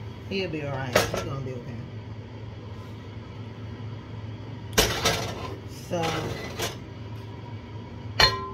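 A metal pan clanks and knocks.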